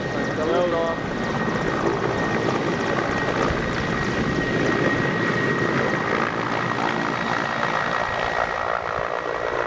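A twin-turbine transport helicopter lifts off, its turbines and rotor growing louder.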